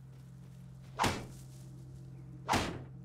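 A tool strikes a bush with sharp thuds.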